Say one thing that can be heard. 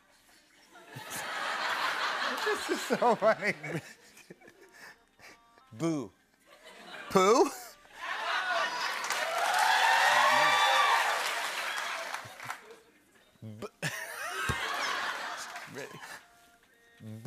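A studio audience laughs and cheers loudly.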